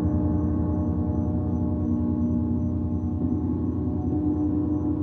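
A large gong hums with a deep, steady, shimmering drone.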